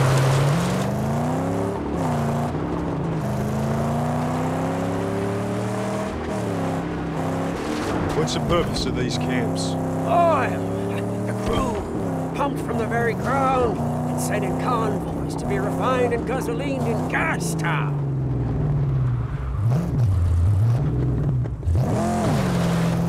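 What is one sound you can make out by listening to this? A car engine roars and revs steadily, rising and falling in pitch.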